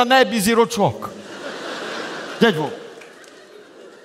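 An audience laughs in a large hall.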